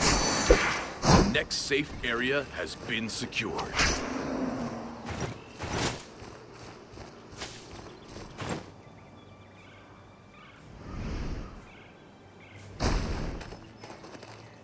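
Sword blows land with sharp, heavy impacts.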